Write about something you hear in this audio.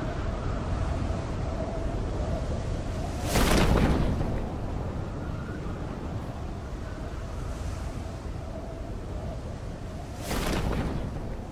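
Wind rushes steadily past a parachute.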